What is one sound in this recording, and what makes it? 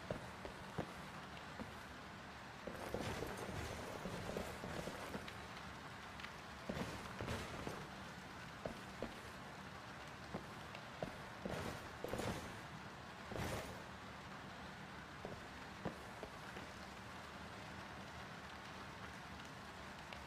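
Footsteps thud on wooden stairs and floorboards.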